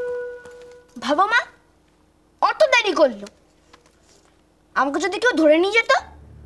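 A woman speaks emotionally, close by, in short bursts.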